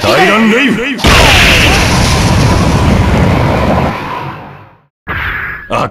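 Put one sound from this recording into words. A burst of fire roars loudly and slowly fades.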